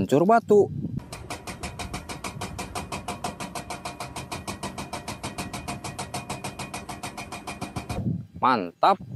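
A hydraulic breaker hammers rapidly on rock.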